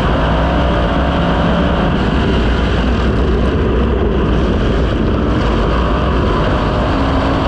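Dirt and clods spatter against a race car's body.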